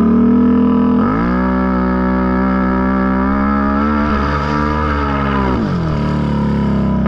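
A quad bike engine revs up hard and then drops back.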